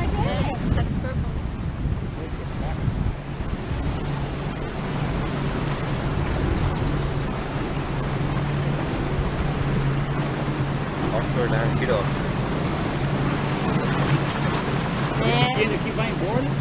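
Water splashes past a moving boat.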